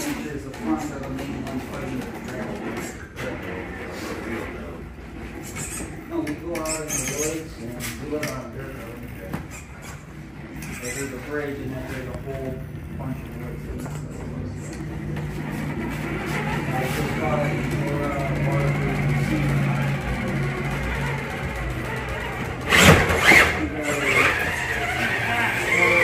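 A small electric motor whirs as a toy truck crawls over rocks.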